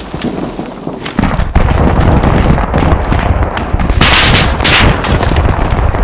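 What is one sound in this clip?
A rifle clicks and rattles as it is handled.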